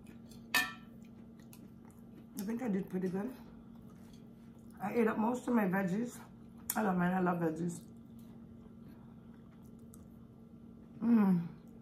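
A woman chews food noisily.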